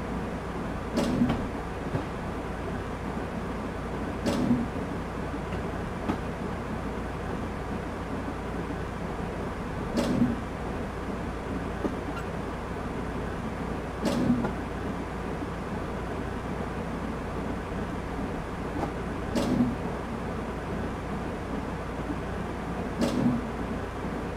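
Train wheels thump over rail joints every few seconds.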